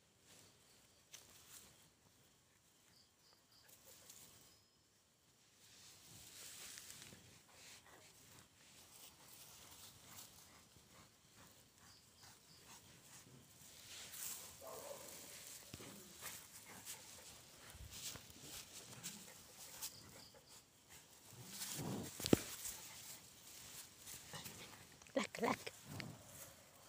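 Straw rustles and crunches close by.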